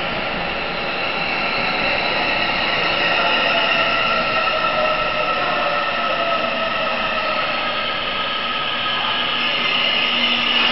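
A train rolls along the tracks with a steady rumble and squealing wheels.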